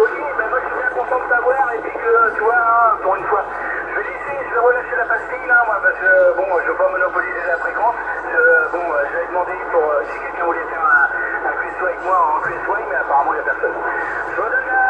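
A man's voice talks over a radio loudspeaker, thin and tinny.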